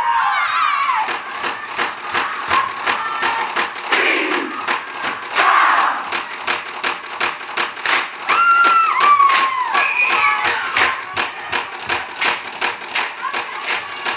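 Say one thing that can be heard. Hands clap and slap in a fast, steady rhythm.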